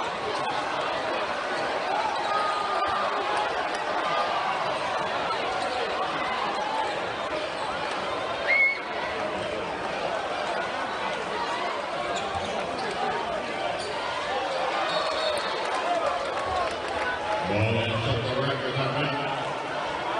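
A crowd chatters and cheers throughout a large echoing arena.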